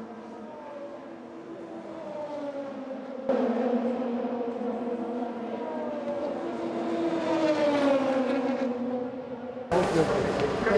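A race car engine roars past at high speed, its pitch rising and falling as it passes.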